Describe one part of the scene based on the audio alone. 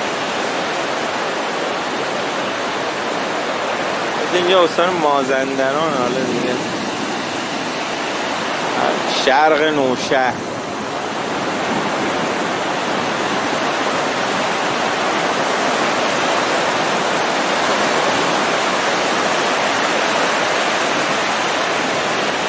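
Waves crash and roar steadily outdoors.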